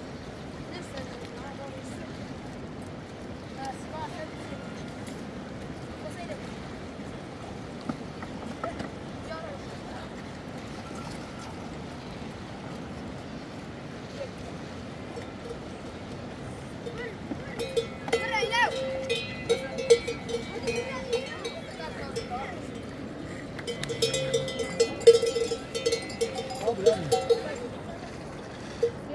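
A river flows and rushes over rocks.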